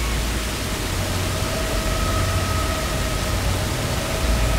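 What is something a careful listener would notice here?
A glowing magical light hums with a soft, steady shimmering tone.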